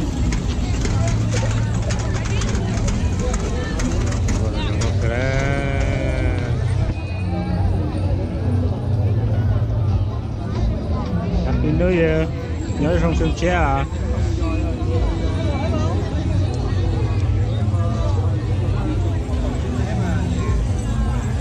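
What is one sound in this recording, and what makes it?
A crowd chatters outdoors all around.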